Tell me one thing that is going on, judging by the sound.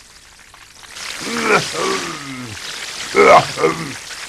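A cartoon tiger growls and cries out loudly.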